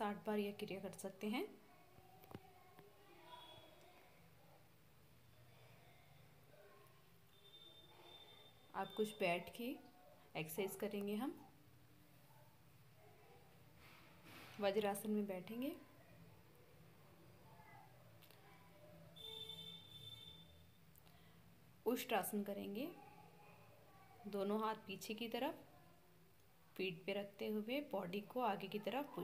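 A young woman speaks calmly in short phrases, giving instructions.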